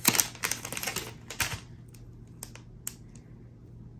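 Plastic bubble wrap crinkles and rustles as a hand handles a package.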